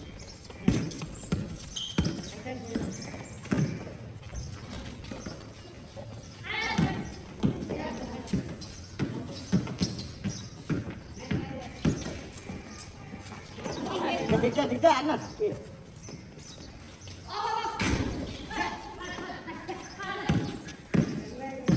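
A basketball bounces on a hard court outdoors.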